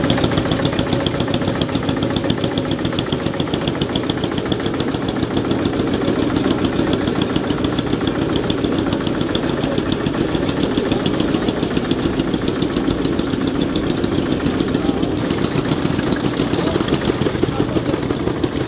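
Old tractor engines chug and putter steadily close by.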